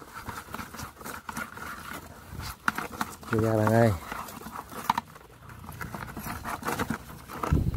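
A wire mesh trap rattles as it is lifted out of a plastic bucket.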